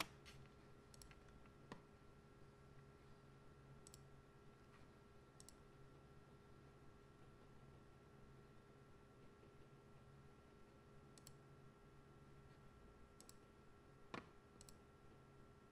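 A computer mouse clicks now and then.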